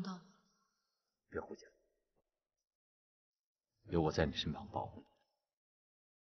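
A man speaks quietly and seriously close by.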